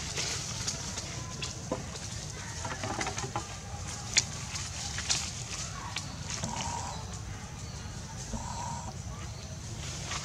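Monkeys scramble on a tree branch, with leaves and twigs rustling.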